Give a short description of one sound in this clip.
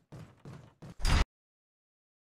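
A heavy metal door bangs open.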